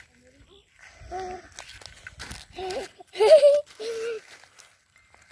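A young child speaks excitedly close by.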